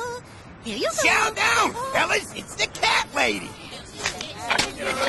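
A man speaks in a playful, comic voice.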